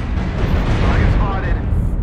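Laser weapons zap.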